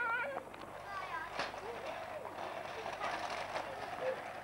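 Children shout and chatter in the distance outdoors.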